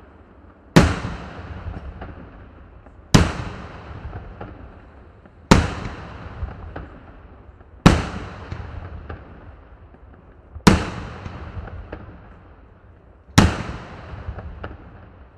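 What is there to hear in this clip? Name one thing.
Small firecrackers crackle and pop between the booms.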